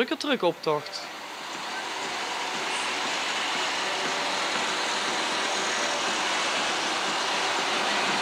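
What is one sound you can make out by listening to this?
Truck engines rumble as heavy trucks drive past slowly.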